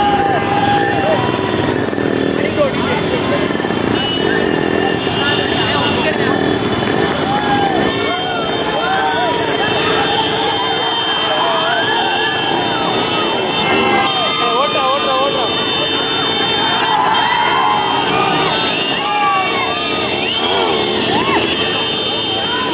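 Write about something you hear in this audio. Motorcycles ride along at low speed.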